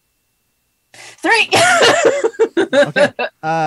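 A young woman laughs loudly over an online call.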